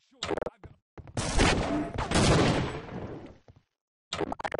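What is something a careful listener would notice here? Gunfire bursts out loudly in an echoing space.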